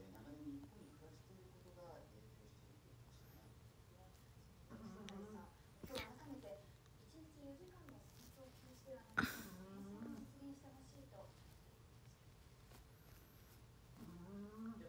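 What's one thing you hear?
A young woman speaks softly and calmly, close by.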